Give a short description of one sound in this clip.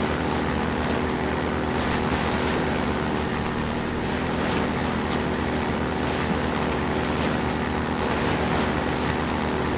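Water splashes under tyres.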